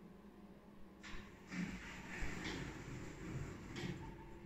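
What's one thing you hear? Elevator doors slide shut with a soft rumble.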